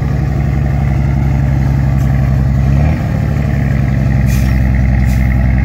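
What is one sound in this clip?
A diesel truck engine idles and rumbles nearby.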